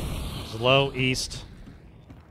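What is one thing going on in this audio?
A man speaks briefly and loudly into a close microphone.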